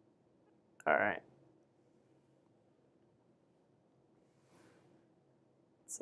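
A hand pats flat on a paper strip.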